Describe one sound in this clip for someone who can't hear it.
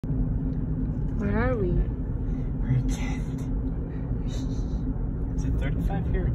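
A car's tyres and engine rumble steadily on the road.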